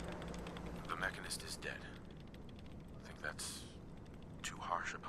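A man speaks calmly, slightly muffled.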